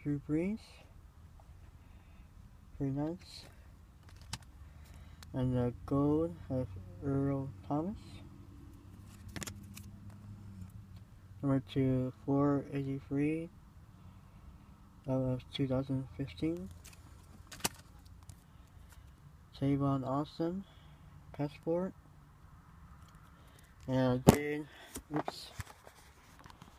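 Stiff cards slide and rub against each other in someone's hands.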